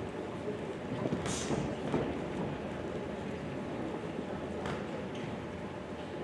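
Boxers' shoes shuffle and squeak on the ring canvas.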